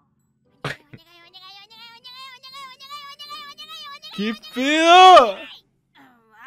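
A cartoon character whines in a high, pleading voice.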